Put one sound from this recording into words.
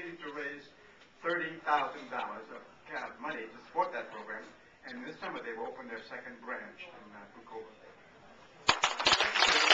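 A man speaks calmly into a microphone over loudspeakers in a large room.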